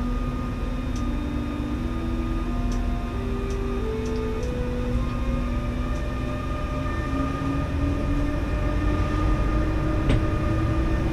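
Wheels click over rail joints now and then.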